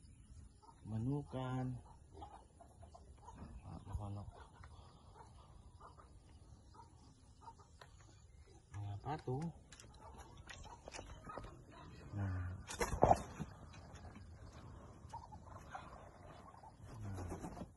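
Ducks quack loudly nearby.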